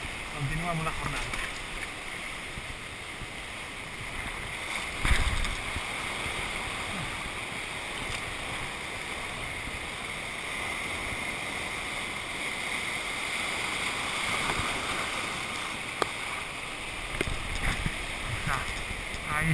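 Waves wash and churn against rocks close by.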